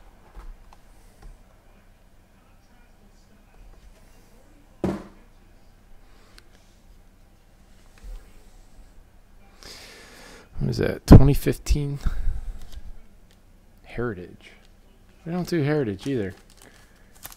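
A hard plastic case taps and clicks as hands turn it over.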